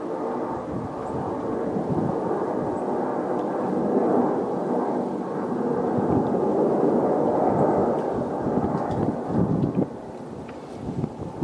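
Aerobatic planes drone far overhead.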